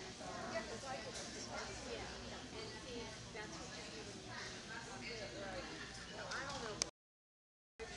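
A woman talks nearby in a large echoing hall.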